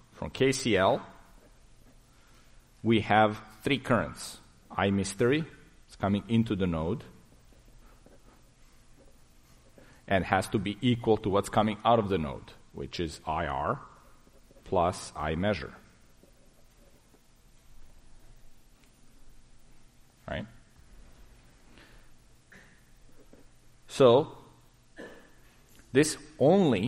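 A man lectures calmly into a microphone, pausing often.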